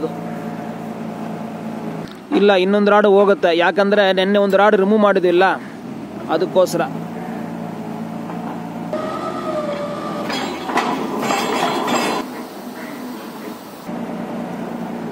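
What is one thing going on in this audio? A drilling rig's engine hums steadily.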